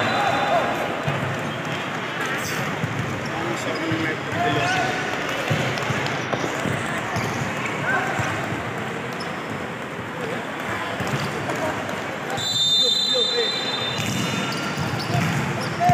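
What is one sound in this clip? Players' shoes squeak on a hard floor in a large echoing hall.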